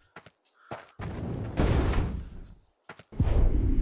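A fireball whooshes and crackles.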